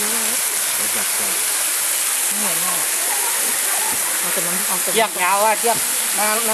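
Water pours and splashes steadily down a rock face into a pool.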